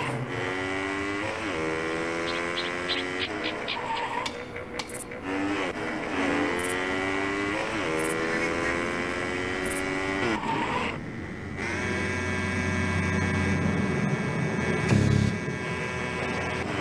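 A small motorbike engine buzzes and revs up through the gears.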